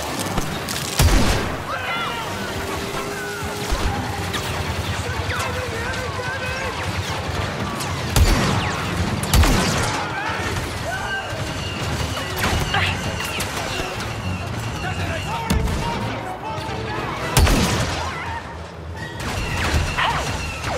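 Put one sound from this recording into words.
Laser rifle shots fire in sharp bursts.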